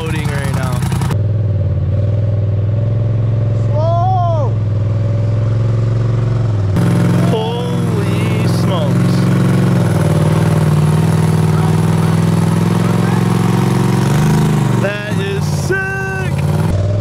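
An off-road vehicle's engine rumbles loudly and steadily.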